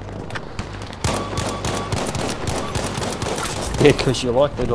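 A rifle fires a quick burst of sharp shots.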